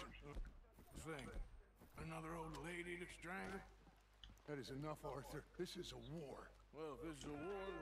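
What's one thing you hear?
A second man answers in a low, gruff voice.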